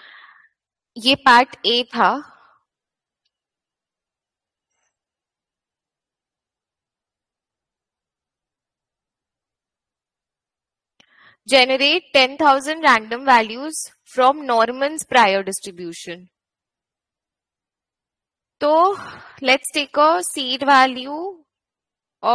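A woman speaks calmly into a close microphone, explaining in bursts with pauses.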